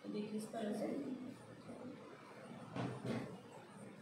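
Silicone cups tap softly on a wooden table.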